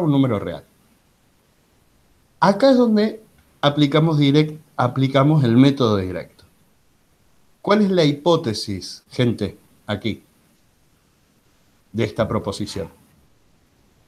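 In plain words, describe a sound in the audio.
A man explains calmly, heard through an online call.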